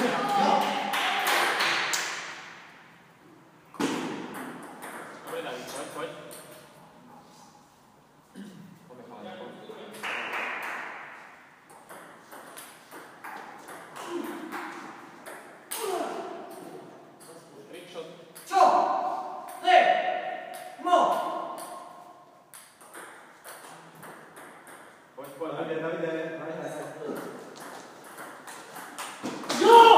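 A table tennis ball clicks off paddles and the table in a large echoing hall.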